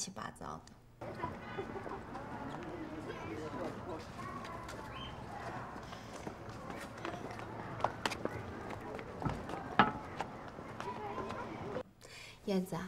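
Footsteps tap on paving outdoors.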